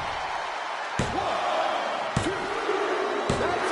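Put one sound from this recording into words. A referee slaps the mat several times.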